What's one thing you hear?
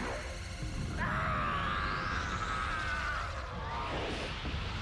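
A cartoon creature shrieks with glee.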